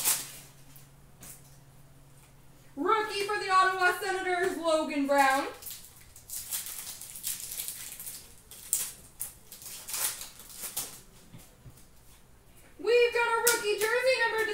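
Cards and foil wrappers rustle and crinkle in someone's hands.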